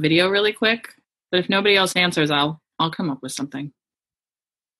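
A man speaks briefly and calmly over an online call.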